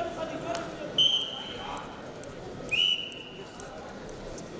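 A referee blows a whistle in short sharp blasts.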